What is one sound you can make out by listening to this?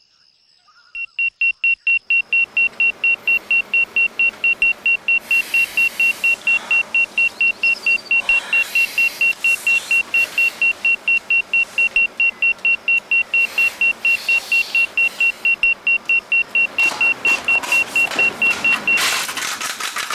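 An alarm clock beeps rapidly and steadily.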